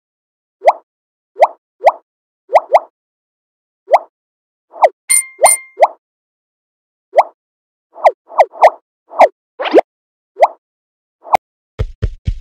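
A phone game plays short bright popping chimes.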